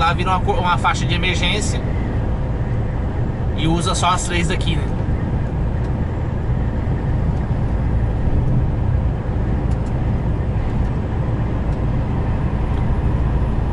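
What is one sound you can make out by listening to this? Tyres roar on a road.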